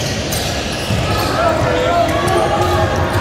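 Young players call out to each other across the court.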